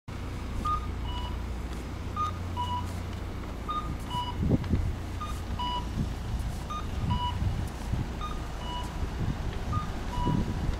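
Footsteps tap on the pavement.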